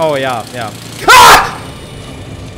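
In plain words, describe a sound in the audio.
A young man screams loudly into a close microphone.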